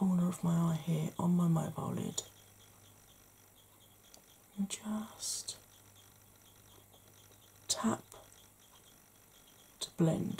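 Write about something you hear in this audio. A woman speaks softly close to a microphone.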